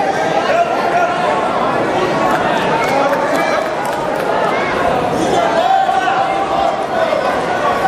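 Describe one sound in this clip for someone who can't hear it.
A crowd of spectators chatters throughout a large echoing hall.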